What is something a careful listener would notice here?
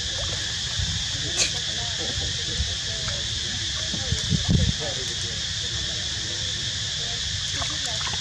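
Water splashes as young monkeys play in a shallow pool.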